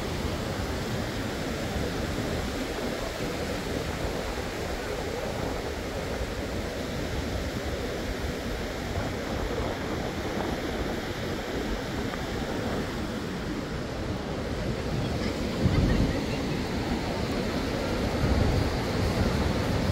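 Wind gusts across the microphone outdoors.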